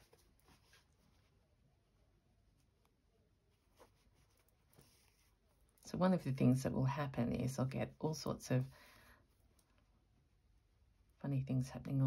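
Thread is pulled through cloth with a soft scratch.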